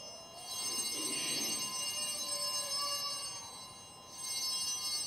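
A man speaks slowly into a microphone in an echoing hall.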